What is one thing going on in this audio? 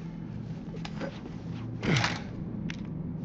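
A metal pipe swings and strikes with a heavy thud.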